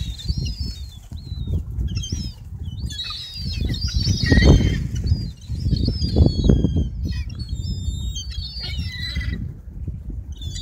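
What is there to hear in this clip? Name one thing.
A flock of gulls calls close overhead with high, squealing cries.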